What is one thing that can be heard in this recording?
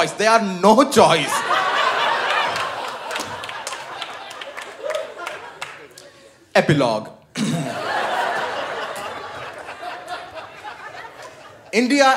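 A large audience laughs and applauds loudly.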